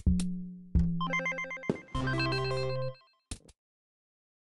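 A cheerful game jingle plays.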